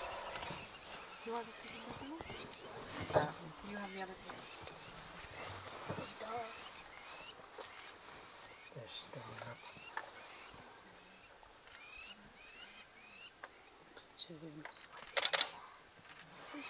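Dry grass rustles and crackles under a cheetah's paws.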